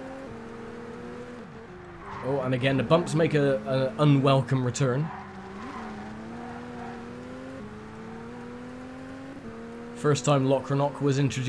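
A car engine hums steadily, shifting pitch as it changes gear.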